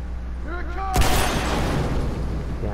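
An explosion bursts with a loud boom.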